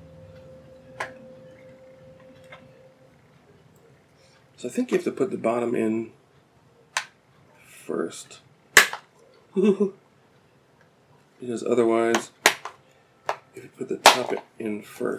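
Small plastic parts click and snap.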